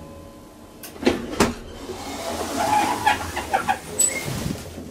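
Elevator doors slide open.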